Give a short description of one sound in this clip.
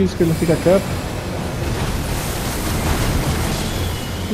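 A magical blast whooshes and roars.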